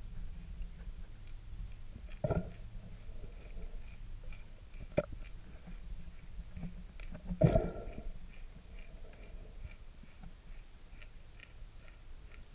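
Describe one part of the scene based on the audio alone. A low, muffled rumble of water goes on steadily underwater.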